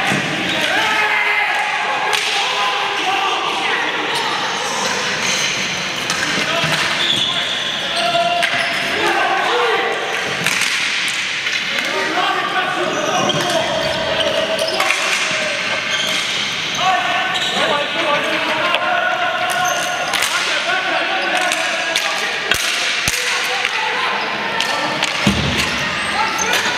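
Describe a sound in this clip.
Sticks clack against a ball and the boards.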